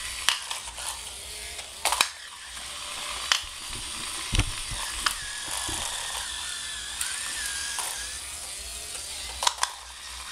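A hand sets a small robot car down on a tiled floor with a clack.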